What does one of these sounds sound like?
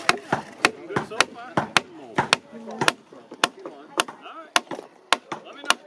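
A wooden mallet knocks a peg into timber with sharp, steady blows.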